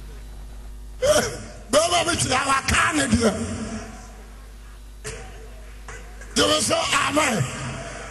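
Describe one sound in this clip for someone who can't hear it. A man preaches with animation into a microphone.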